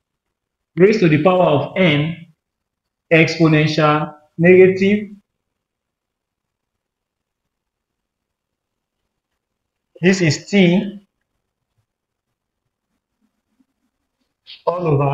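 A man speaks calmly in short phrases, as if explaining a lesson.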